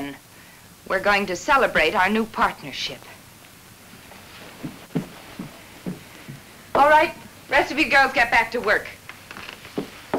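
A young woman answers calmly and close by.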